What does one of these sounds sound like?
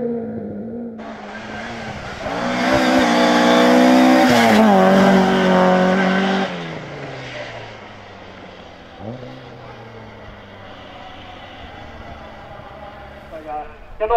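A rally car engine revs hard and then fades into the distance.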